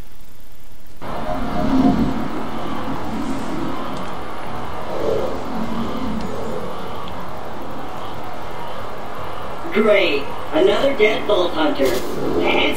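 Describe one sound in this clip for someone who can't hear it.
Wind roars in a blizzard.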